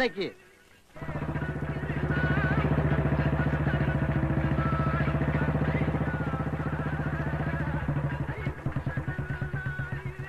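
A motorcycle engine putters steadily.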